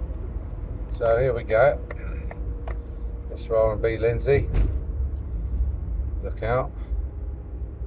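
A middle-aged man speaks in short bursts close by inside a car.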